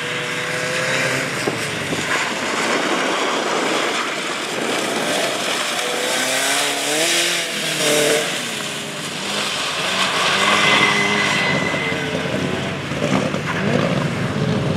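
Tyres hiss and spray through water on wet tarmac.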